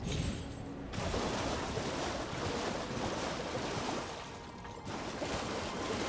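Water splashes under galloping hooves.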